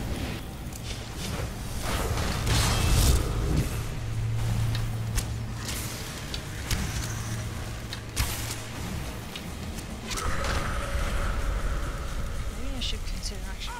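A swirling spell whooshes and hums.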